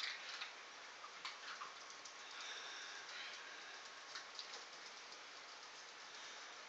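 Small dogs' claws patter and tap on a hard floor.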